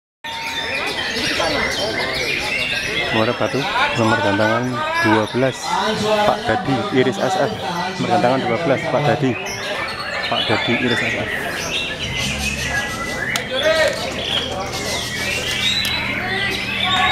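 A songbird sings loud, busy warbling phrases close by.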